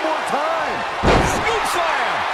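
A wrestler's body slams down onto a ring mat with a heavy thud.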